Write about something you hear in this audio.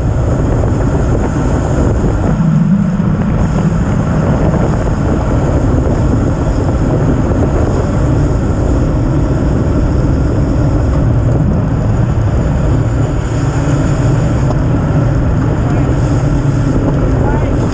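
Wind rushes loudly past the rider on a fast bicycle ride.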